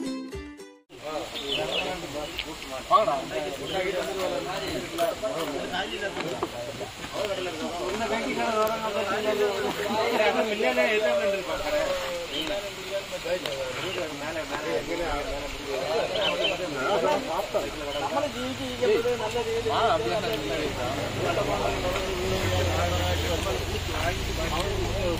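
Other men answer in casual conversation nearby.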